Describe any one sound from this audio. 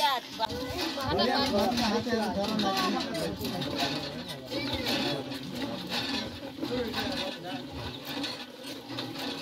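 Several women talk loudly and excitedly over each other nearby.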